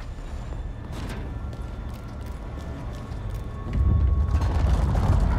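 Footsteps run quickly on a hard floor.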